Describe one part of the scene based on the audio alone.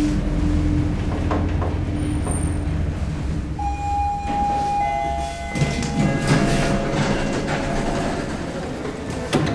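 An elevator hums and rumbles steadily.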